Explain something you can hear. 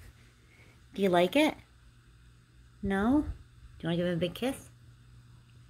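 A small dog whines in short, rising yelps.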